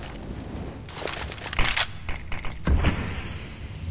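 A rifle fires in rapid bursts at close range.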